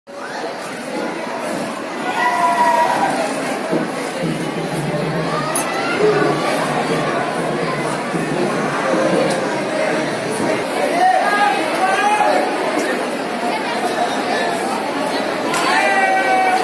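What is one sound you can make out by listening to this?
A crowd of people chatters loudly in an echoing hall.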